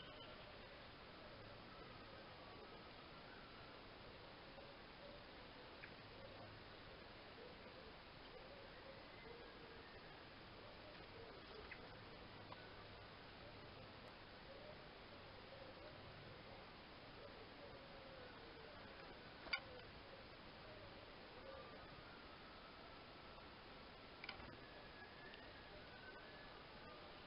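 Small birds chirp and twitter outdoors.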